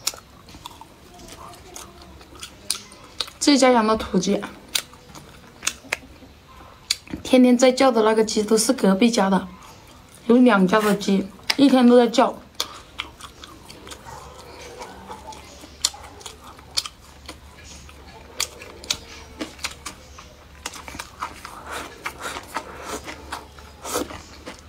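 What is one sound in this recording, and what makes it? A young woman chews food noisily close to the microphone.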